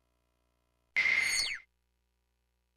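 An electronic menu chime sounds with a quick sweeping tone.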